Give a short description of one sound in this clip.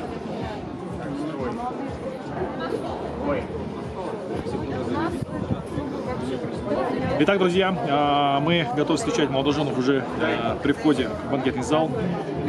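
A young man speaks with animation into a microphone close by.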